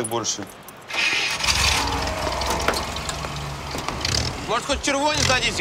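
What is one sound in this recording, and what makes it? An off-road vehicle's engine starts and idles.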